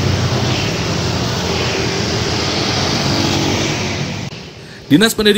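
A motorbike engine hums as it rides past on a street.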